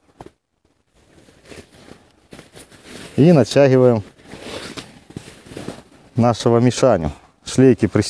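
Fabric rustles and brushes against clothing.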